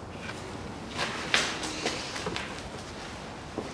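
A cloth rustles against plastic parts.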